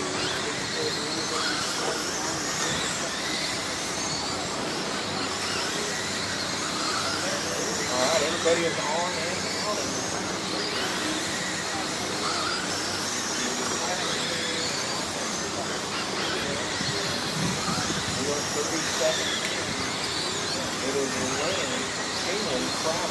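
Small electric motors whine high and rise and fall as toy cars race around a dirt track.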